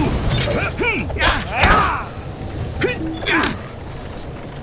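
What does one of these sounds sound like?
Blades swish and strike in a quick fight.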